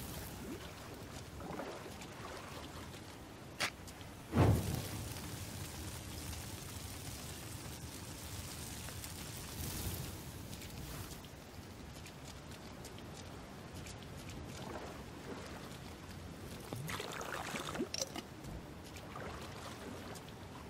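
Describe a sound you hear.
A man talks into a microphone, close and calm.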